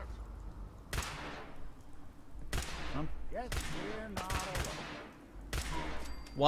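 Energy gun shots crack out in quick bursts.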